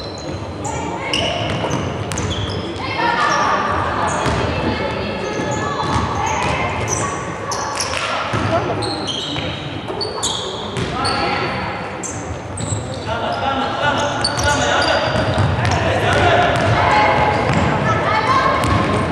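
Young girls shout to one another across the court.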